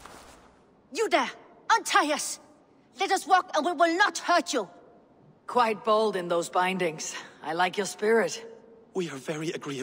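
A man shouts out urgently.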